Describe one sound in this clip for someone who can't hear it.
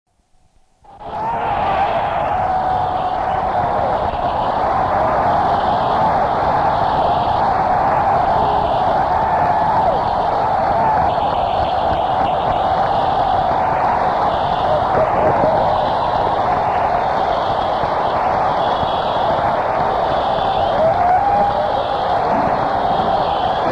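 A guitarist plays a loud electric guitar on stage, heard through a rough, distant live recording.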